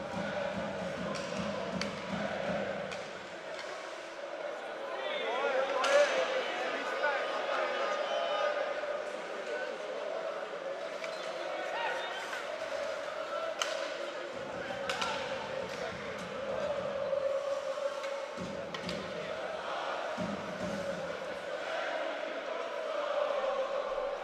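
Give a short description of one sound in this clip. A crowd in a large arena cheers and chants throughout.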